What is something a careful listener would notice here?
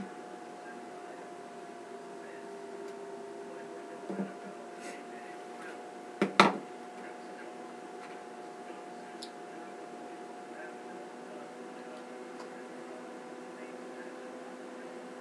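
Hands rustle and brush through hair close by.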